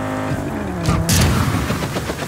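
A loud crash sounds as a car hits something.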